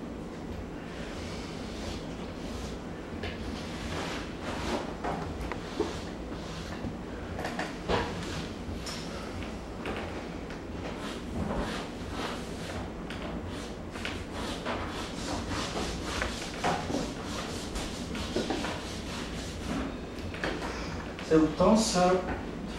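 Chalk scratches and scrapes on a wall in quick strokes.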